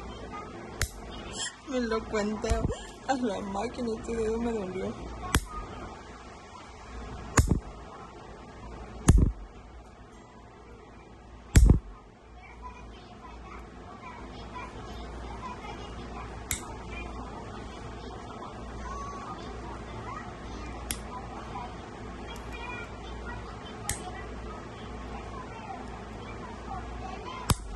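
Nail clippers snap through fingernails.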